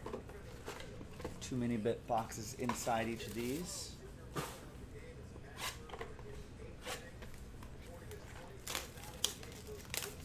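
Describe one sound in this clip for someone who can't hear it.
Cardboard boxes tap and click against each other.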